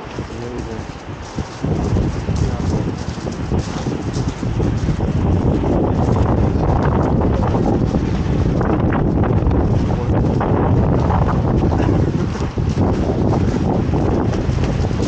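Wind gusts hard and rumbles outdoors.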